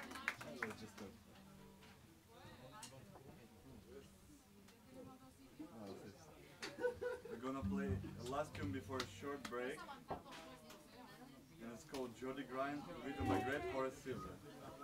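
A jazz band plays.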